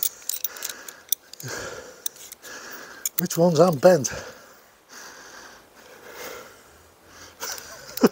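Metal tent pegs clink together.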